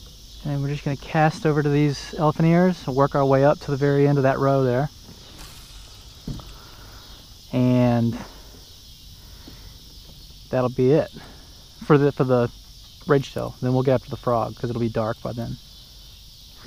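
A man talks close by, calmly and with pauses.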